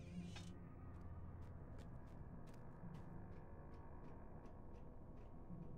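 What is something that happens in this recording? Footsteps tap quickly and evenly on a stone floor.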